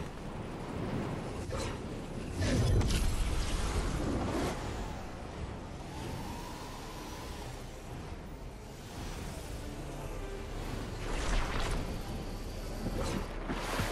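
Wind rushes steadily past a falling figure.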